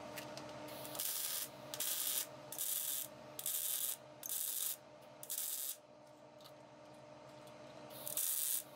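An angle grinder grinds metal in harsh bursts.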